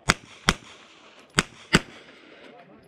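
Pistol shots crack sharply outdoors, several in quick succession.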